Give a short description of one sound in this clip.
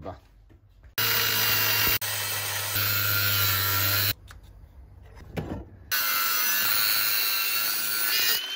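An angle grinder whines loudly as it grinds metal.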